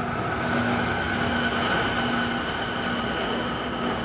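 A train hums steadily while standing at a nearby platform.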